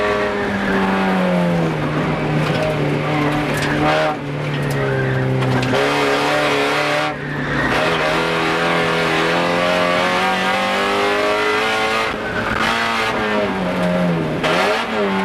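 A car engine roars loudly from inside the cabin, revving up and down with gear changes.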